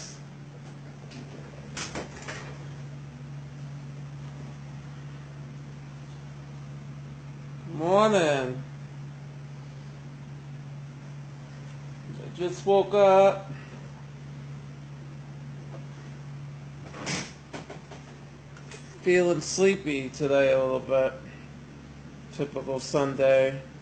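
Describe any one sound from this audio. A ceiling fan hums steadily.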